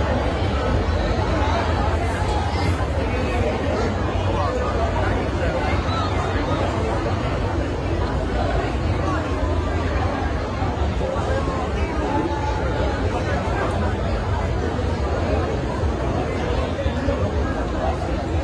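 Loud music with a heavy bass thumps through large loudspeakers in a big echoing hall.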